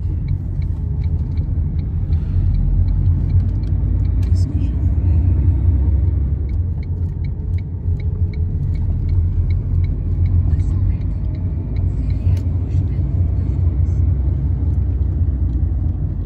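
A car engine and tyres rumble low and steady.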